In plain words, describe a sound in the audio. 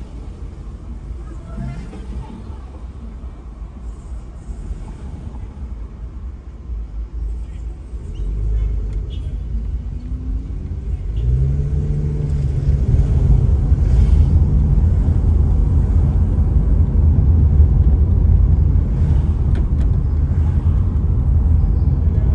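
A car engine hums steadily from inside.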